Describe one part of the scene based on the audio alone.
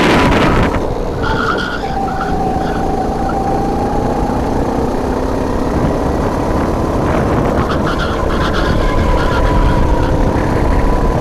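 A racing kart engine screams close up at full throttle.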